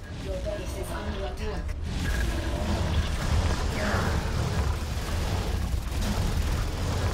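Low rumbling game sound effects play throughout.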